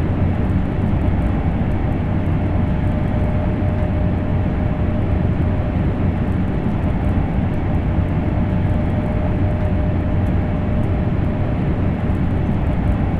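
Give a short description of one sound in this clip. A train rumbles steadily along the rails at high speed.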